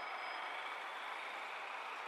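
A motorcycle rides past.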